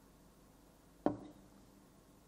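A glass knocks on a table.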